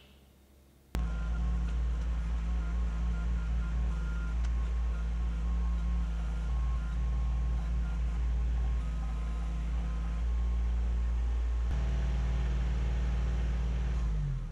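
A small tractor engine rumbles steadily.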